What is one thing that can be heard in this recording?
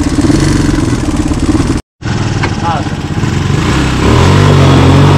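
A quad bike engine idles with a rough, steady rumble.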